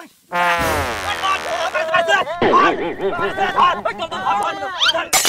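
Young boys shout excitedly nearby.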